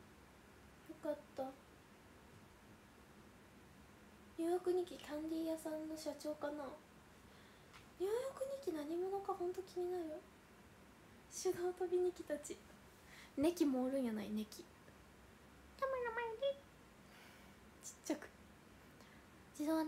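A young woman talks casually and close to a microphone, in short bursts with pauses.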